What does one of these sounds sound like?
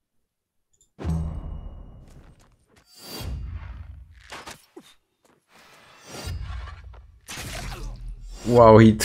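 Weapons clash in a battle.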